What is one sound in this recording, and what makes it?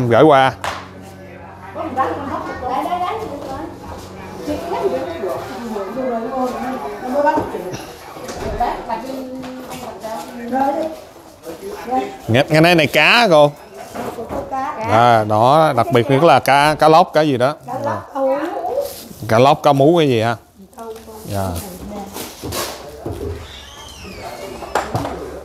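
Women talk and chatter nearby.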